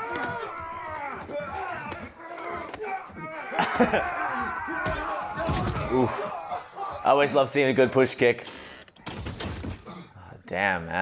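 A man grunts and groans in pain.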